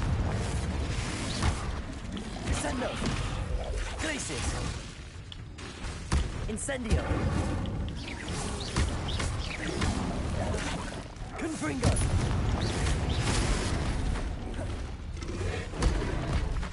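Magic spells crackle and burst with sharp blasts.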